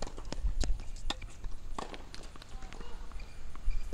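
A racket hits a tennis ball with a sharp pop.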